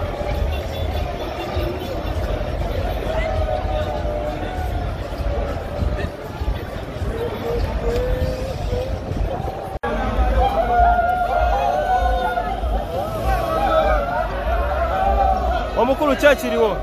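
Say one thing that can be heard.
A large crowd chatters and murmurs outdoors.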